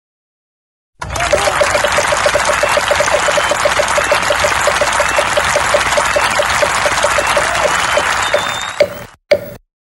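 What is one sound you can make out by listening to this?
A game wheel clicks rapidly while it spins fast.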